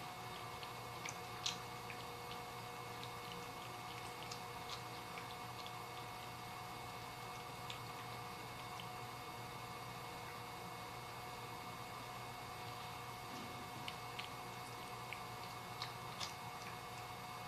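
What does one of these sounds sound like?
A cat chews and crunches food from a bowl, with small clicks and taps.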